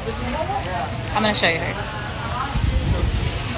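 A young woman speaks casually, close to the microphone.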